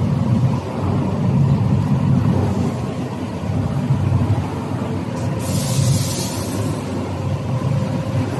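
Wet strips of food slosh and tumble inside a spinning drum.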